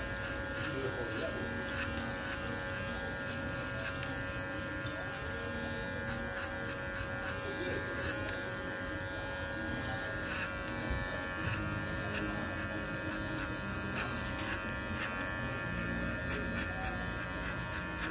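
An electric hair clipper buzzes steadily close by.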